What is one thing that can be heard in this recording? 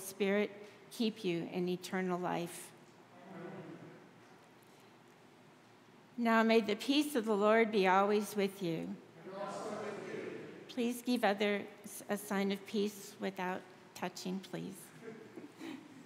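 An elderly woman speaks expressively into a microphone.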